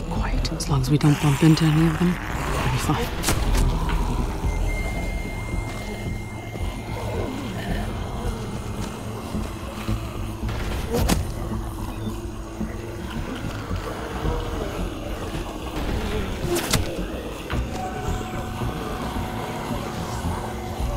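Zombies groan and growl in a crowd.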